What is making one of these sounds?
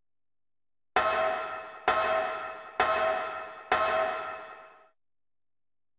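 Metal ladder rungs clang with each step of a climb.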